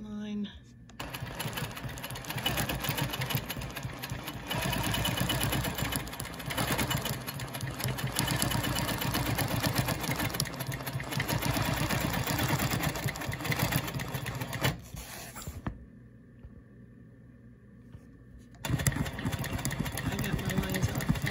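A sewing machine hums and stitches steadily.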